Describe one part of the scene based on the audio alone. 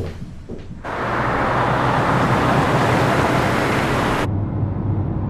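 A car engine hums as it drives along.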